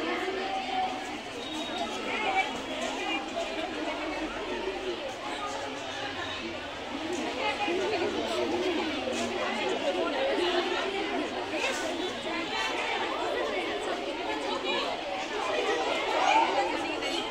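Young girls speak and call out with animation, heard from a distance outdoors.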